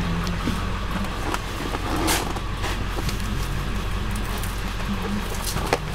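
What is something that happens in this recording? A hand rubs and pats a seat.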